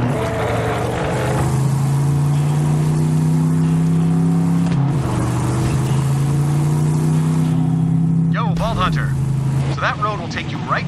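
A buggy engine hums steadily and shifts pitch as it drives.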